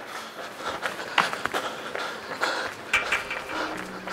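A man pants heavily and exclaims close by.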